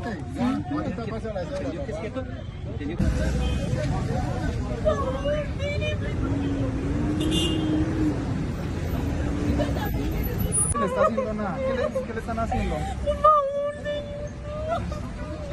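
A man speaks excitedly nearby.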